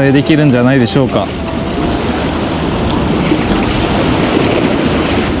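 Sea waves wash against rocks nearby.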